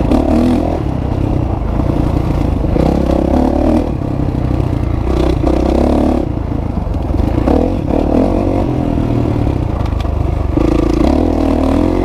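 Tyres crunch over a gravel track.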